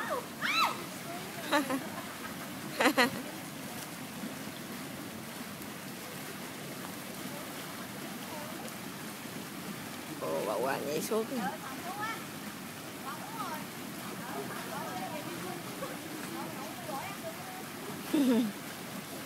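Children shout and call out playfully outdoors.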